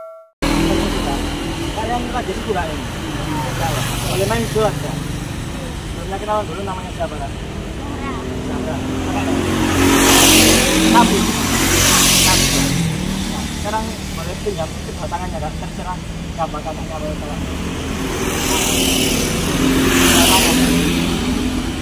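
A young woman answers calmly close by.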